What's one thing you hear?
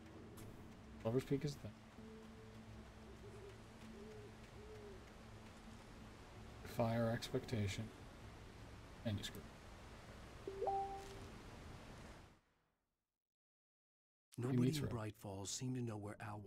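A man speaks casually into a close microphone.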